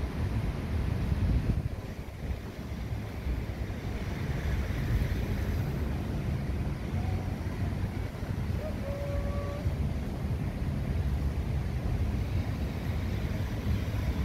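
Wind gusts outdoors, buffeting the microphone.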